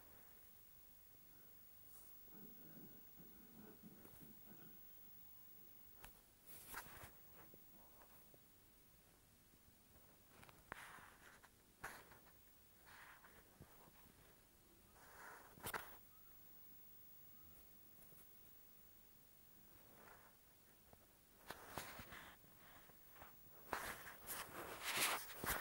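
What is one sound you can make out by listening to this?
Footsteps patter on the ground as a figure runs.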